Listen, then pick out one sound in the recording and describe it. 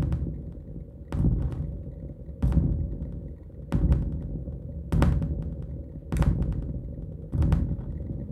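Electronic music pulses in a steady rhythm, with a deep thumping beat about every second.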